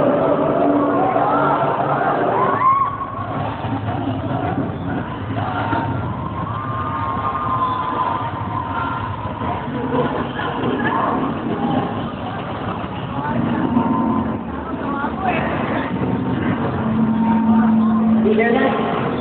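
Music plays loudly over loudspeakers in a large echoing hall.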